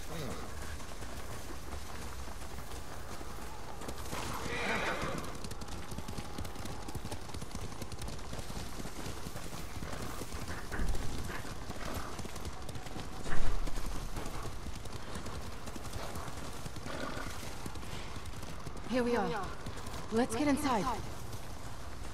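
Horses' hooves thud softly on snow.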